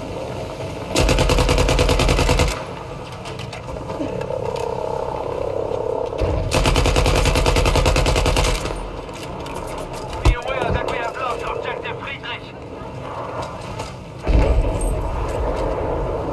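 A heavy machine gun fires long, rapid bursts.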